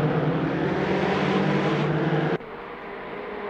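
Racing car engines roar loudly up close.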